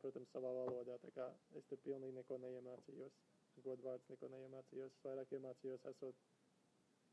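A young man speaks calmly and close to a phone microphone.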